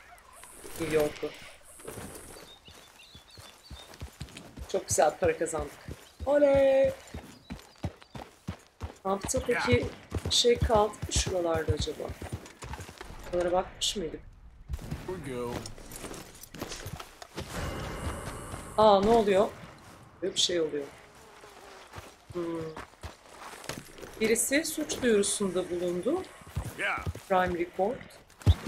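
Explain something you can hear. Horse hooves clop on dirt.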